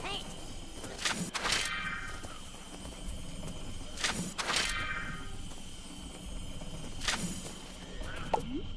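Game coins jingle in short bright bursts, each ringing out.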